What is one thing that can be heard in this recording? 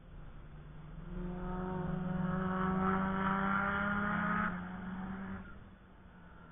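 A race car engine roars and revs in the distance.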